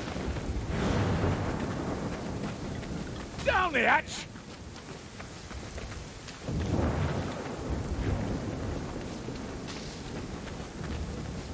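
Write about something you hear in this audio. A torch flame crackles and roars steadily.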